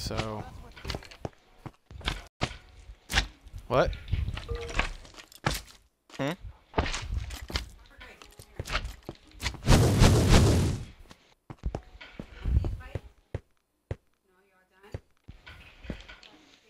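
Footsteps tap on stone in a quick, uneven series.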